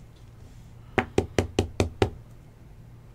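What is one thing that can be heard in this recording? A hard plastic card case clicks and taps as hands handle it.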